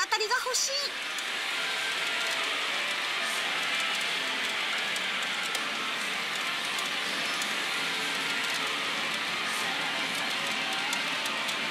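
Loud clattering din of gaming machines fills a busy hall.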